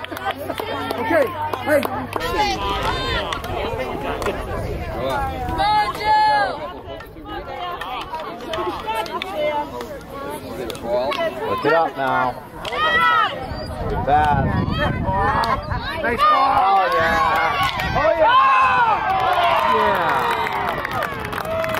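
A field hockey stick clacks against a ball.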